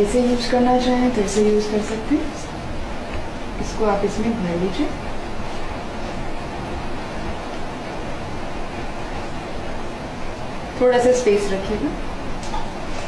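A young woman speaks calmly and explains nearby.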